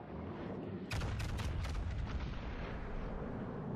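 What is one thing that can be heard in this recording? Heavy shells splash into water all around with loud crashing bursts.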